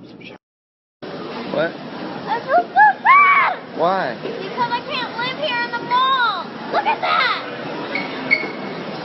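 A young girl sings and talks playfully close by.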